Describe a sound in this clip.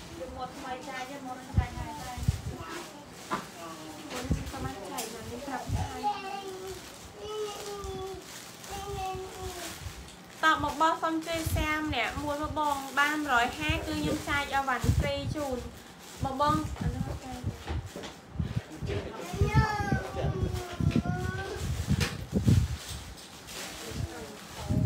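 Clothes rustle as they are handled.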